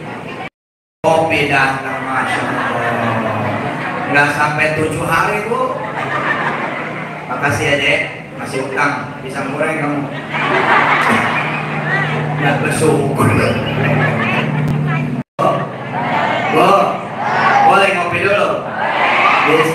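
A man speaks with animation into a microphone over a loudspeaker, in an echoing room.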